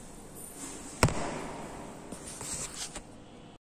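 A phone is handled close up, with a sharp bump and rustling.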